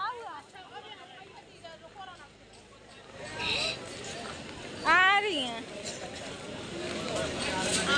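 A busy crowd of men and women chatters nearby outdoors.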